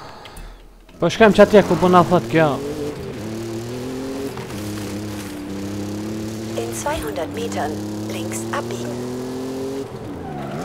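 A car engine revs and hums steadily as it drives.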